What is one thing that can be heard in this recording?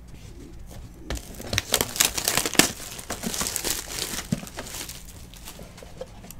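Plastic wrap crinkles and rustles as it is torn from a box.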